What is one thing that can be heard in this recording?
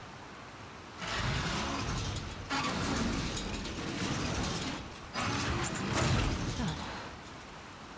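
A metal rolling shutter rattles loudly as it is pushed up.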